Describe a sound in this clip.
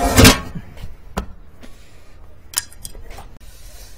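Metal tools clatter on pavement.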